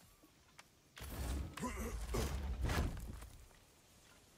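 A heavy wooden chest lid grinds and thuds open.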